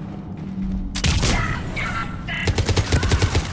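An energy blast crackles and zaps.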